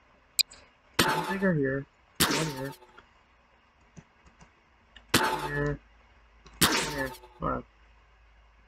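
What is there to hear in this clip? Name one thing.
A toy-like gun zaps and fires in short bursts.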